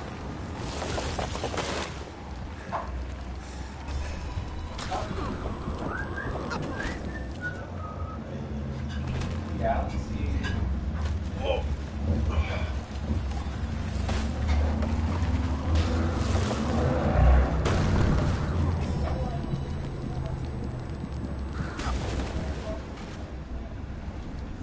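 A sled scrapes and hisses over snow.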